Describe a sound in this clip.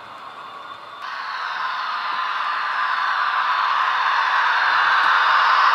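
An electric model locomotive hums and grows louder as it draws near.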